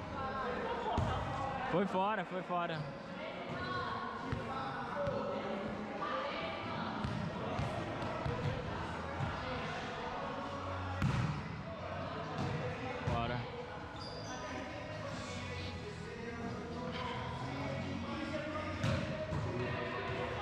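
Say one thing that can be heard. Young women and men shout and call out across a large echoing hall.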